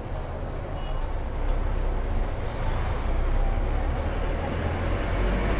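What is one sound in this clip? City traffic hums and rumbles along a busy road.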